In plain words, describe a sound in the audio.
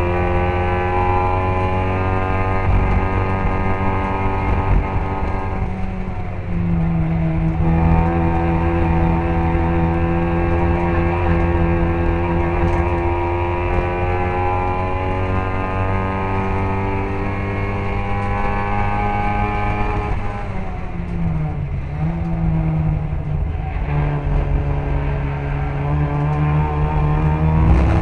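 A small car engine roars loudly close by, revving up and down through the gears.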